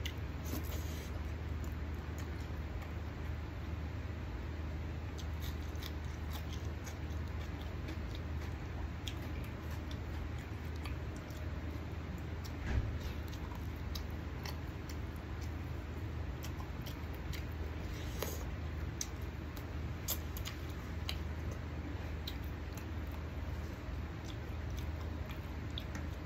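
A man chews food noisily with his mouth close by.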